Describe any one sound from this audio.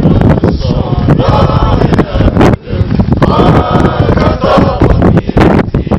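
A group of men and women sing together at a distance.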